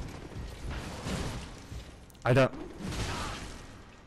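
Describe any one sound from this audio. A magic blast bursts with a bright rush.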